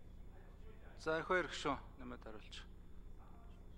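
A second man speaks briefly into a microphone.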